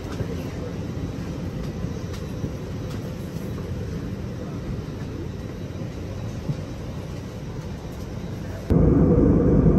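An aircraft cabin hums with a steady low engine drone.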